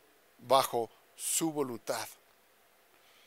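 A man speaks briefly through a microphone, then pauses.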